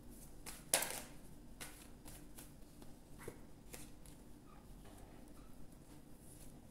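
Playing cards shuffle and slap softly onto a table.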